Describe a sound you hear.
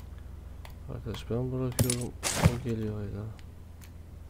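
A young man speaks briefly and calmly into a microphone.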